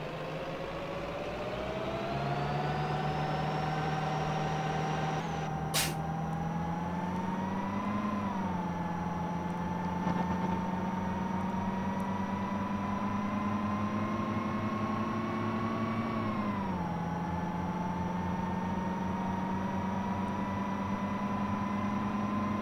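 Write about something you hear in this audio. A bus engine hums and revs, its whine climbing as it speeds up and dropping at each gear change.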